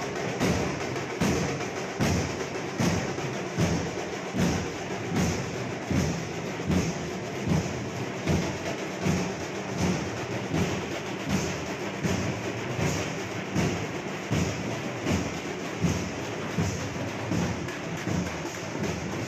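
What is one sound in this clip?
Drums beat in a steady, loud rhythm close by.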